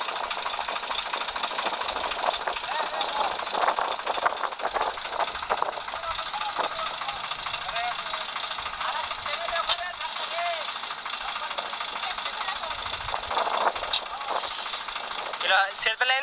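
A tractor engine idles steadily.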